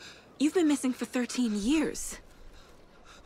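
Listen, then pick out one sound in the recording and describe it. A woman speaks calmly and closely.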